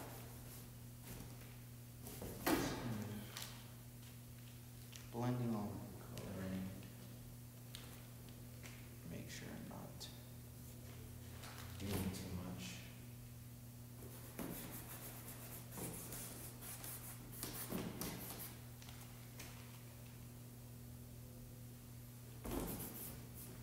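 A paintbrush dabs and scrapes on canvas.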